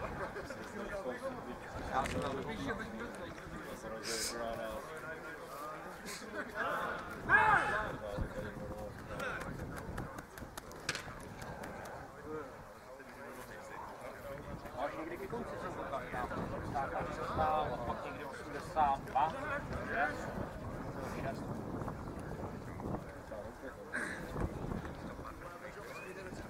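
Men talk and call out at a distance outdoors.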